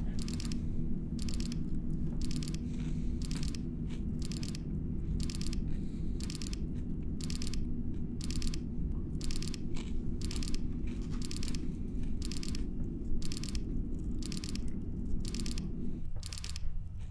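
An electronic alarm beeps over and over at a steady pace.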